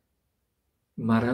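An older man speaks close to a microphone.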